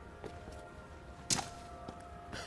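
A blade hacks into a body with a heavy thud.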